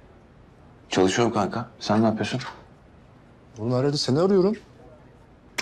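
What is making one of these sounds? Another young man answers calmly in a low voice.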